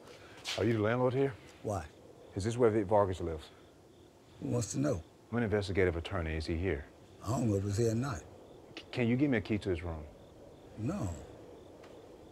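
A man speaks calmly and firmly, close by.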